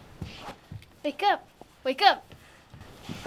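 A young girl squeals loudly twice, close by.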